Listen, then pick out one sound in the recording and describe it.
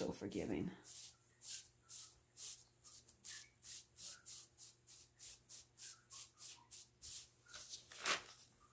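Hands pat soft clay with quick, even taps.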